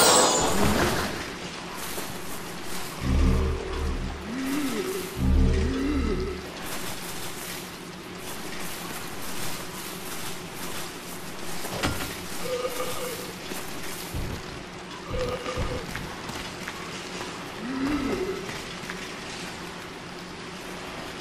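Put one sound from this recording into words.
Metal armour clinks with heavy footsteps on wooden boards.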